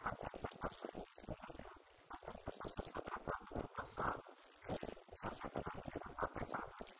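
A man speaks steadily into a microphone, heard through a loudspeaker in a room.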